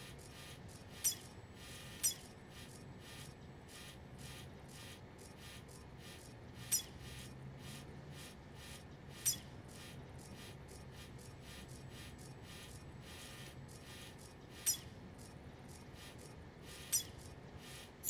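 Short high menu blips sound now and then.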